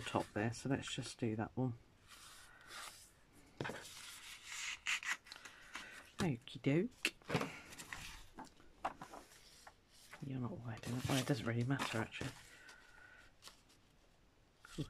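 Paper rustles and crinkles as it is handled up close.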